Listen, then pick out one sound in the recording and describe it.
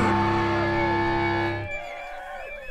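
An electric guitar chord rings out loudly through amplifiers and cuts off.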